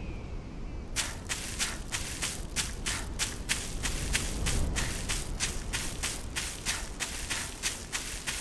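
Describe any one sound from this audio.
Quick footsteps run through grass.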